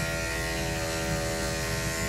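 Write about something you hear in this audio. Electric hair clippers buzz.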